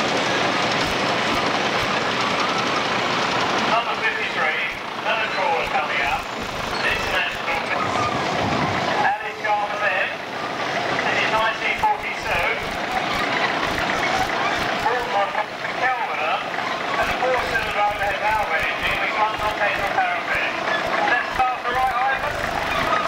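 A tractor engine chugs and rumbles close by.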